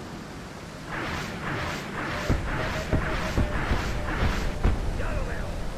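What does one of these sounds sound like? Explosions boom in a quick series.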